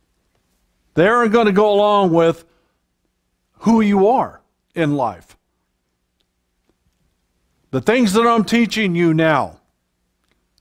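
An elderly man speaks with animation into a microphone, in bursts with pauses.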